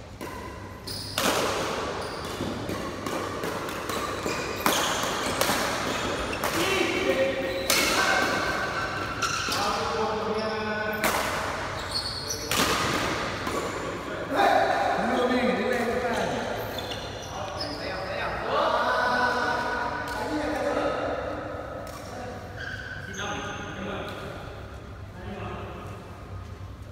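Rackets smack a shuttlecock in quick rallies, echoing in a large hall.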